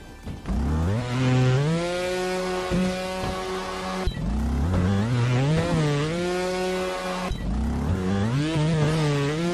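A dirt bike engine revs and whines, rising in pitch again and again.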